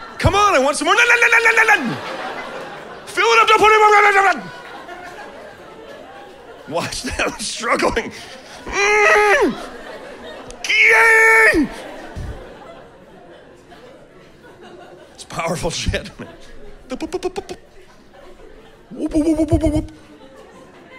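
A middle-aged man speaks with animation through a microphone, in short loud bursts.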